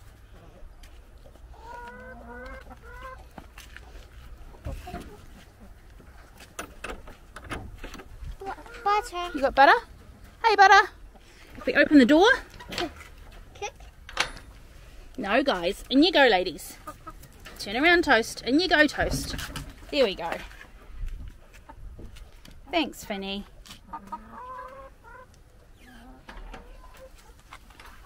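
Hens cluck softly nearby.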